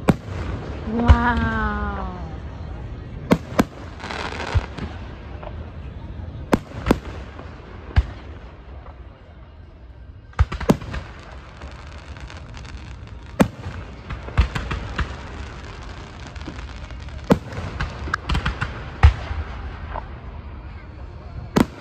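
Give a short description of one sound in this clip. Fireworks crackle as rockets rise with sparkling tails.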